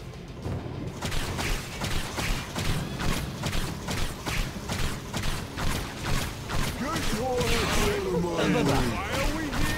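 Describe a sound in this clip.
Quick footsteps run across stone.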